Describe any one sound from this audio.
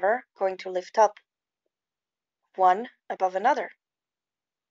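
A woman speaks calmly and close up in short phrases.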